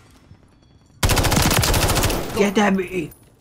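A rifle fires a rapid burst of gunshots.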